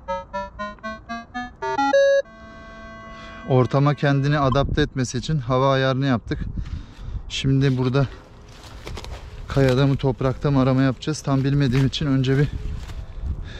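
A metal detector beeps and warbles in changing tones.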